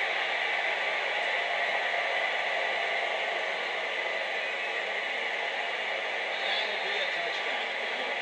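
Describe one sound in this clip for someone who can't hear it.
A stadium crowd roars steadily through a television speaker.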